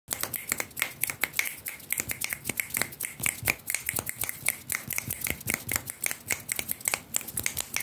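Fingertips tap and scratch rapidly right against the microphone.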